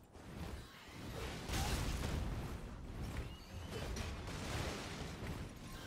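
Footsteps run quickly over stone and grass.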